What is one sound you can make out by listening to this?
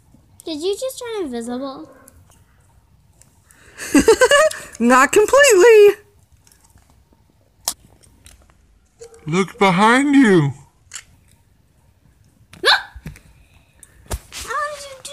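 A young girl speaks in playful, squeaky character voices close by.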